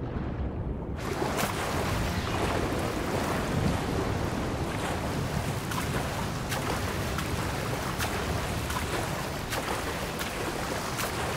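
Water splashes and churns as a swimmer moves through it.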